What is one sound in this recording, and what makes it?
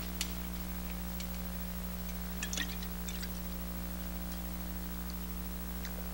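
A glass bottle clinks as a man drinks from it.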